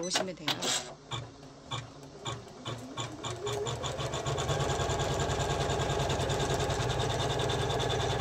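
A sewing machine stitches, slowly at first and then quickly and steadily.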